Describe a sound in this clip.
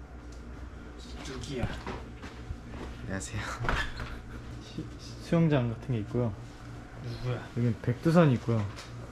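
A young man speaks quietly nearby in a room.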